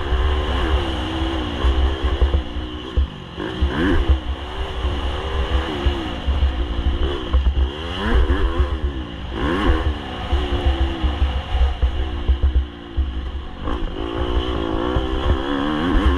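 A dirt bike engine revs up and down rapidly.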